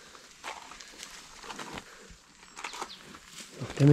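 A cow tears and chews grass close by.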